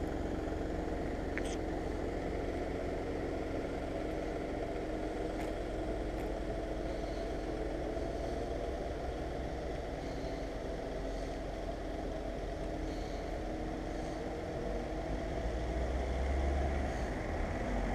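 Wind rumbles steadily against the microphone outdoors, growing stronger near the end.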